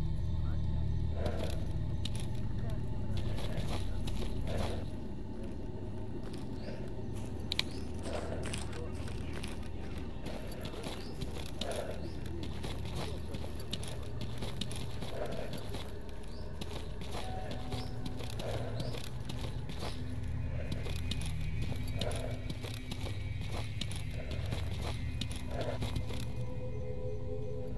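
Footsteps tread steadily through grass and dirt.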